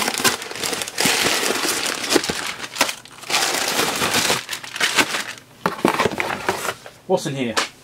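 Paper crinkles and rustles loudly as it is handled.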